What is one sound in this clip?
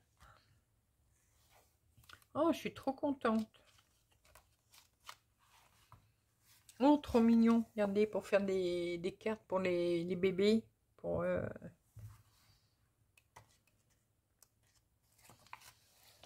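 Magazine pages rustle and flip as they are turned.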